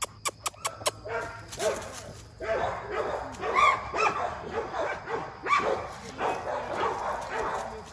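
A large dog howls and yowls loudly nearby.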